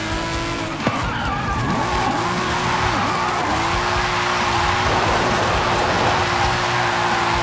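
Tyres squeal and hiss as a car slides sideways.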